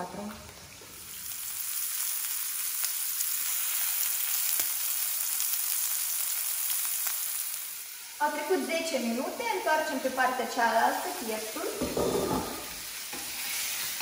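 Meat sizzles steadily in a hot pan.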